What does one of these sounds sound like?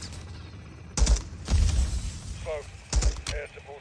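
Loud gunshots ring out in short bursts.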